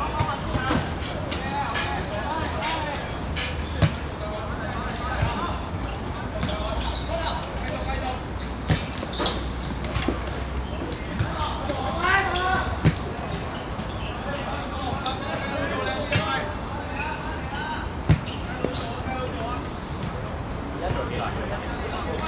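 Shoes scuff and patter on a hard court.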